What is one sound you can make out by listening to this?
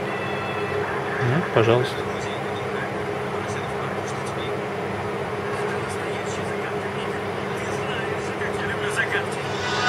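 A cartoon soundtrack plays faintly through a small phone speaker.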